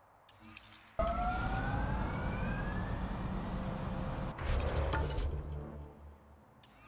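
A vehicle engine roars and revs up.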